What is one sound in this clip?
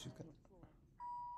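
An elevator chime rings with a steady tone.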